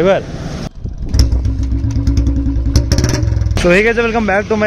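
A motorcycle engine thumps with a deep, steady idle.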